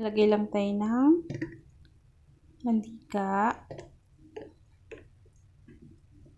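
Oil pours into a pan.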